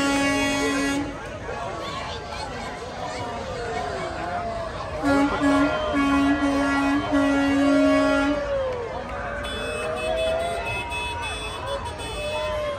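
A crowd of spectators chatters and calls out nearby.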